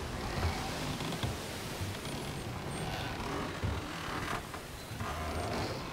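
Storm wind howls over the sea.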